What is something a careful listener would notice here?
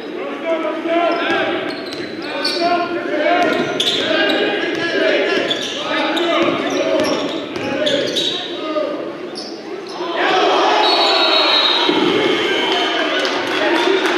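Sneakers squeak sharply on a hardwood court.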